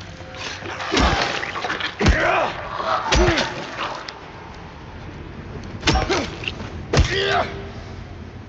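A metal pipe strikes a creature with heavy thuds.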